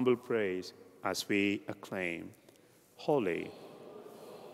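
A man chants in a sustained singing voice through a microphone, echoing in a large hall.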